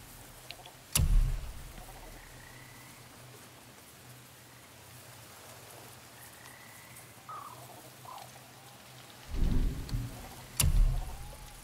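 A game menu clicks sharply as a selection is made.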